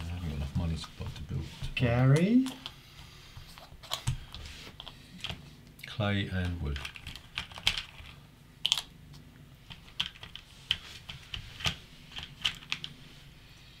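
Game pieces click softly on a board.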